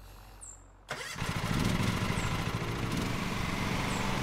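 A ride-on mower's engine starts and runs with a steady drone.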